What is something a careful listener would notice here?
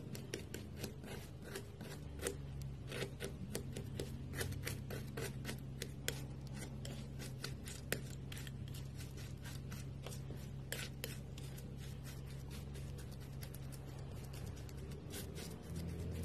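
A palette knife scrapes and dabs through thick paint on paper.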